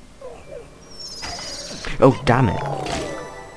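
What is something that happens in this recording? A bright chiming game effect rings out as points are scored.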